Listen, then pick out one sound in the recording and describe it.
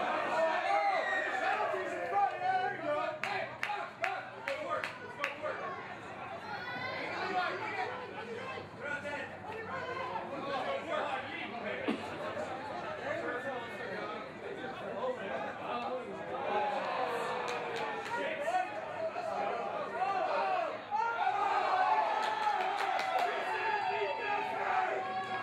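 Players shout to each other on an open field.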